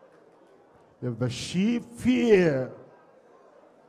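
A man sings out loudly and close by.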